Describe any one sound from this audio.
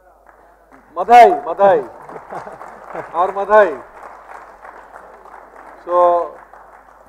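A man in the audience speaks loudly in a large hall.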